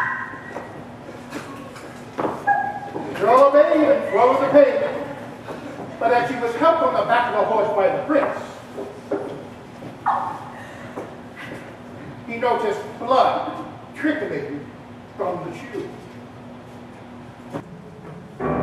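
Actors speak and sing their lines on a stage, heard from the audience in a large hall.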